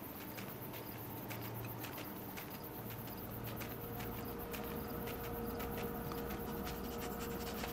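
Quick paw steps crunch through snow.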